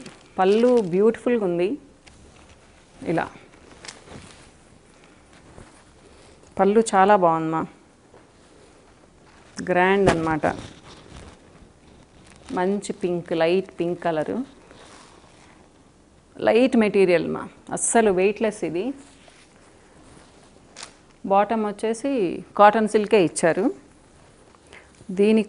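A middle-aged woman speaks calmly in short phrases, close to a microphone.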